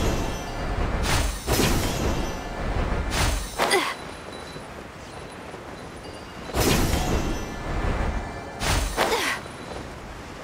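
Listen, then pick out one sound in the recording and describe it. Magical whooshing bursts sweep and fade in a game.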